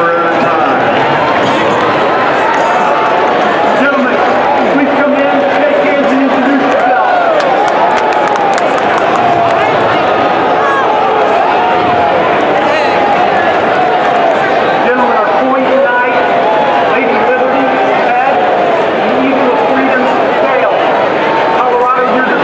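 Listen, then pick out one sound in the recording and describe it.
A large outdoor crowd chatters and murmurs loudly all around.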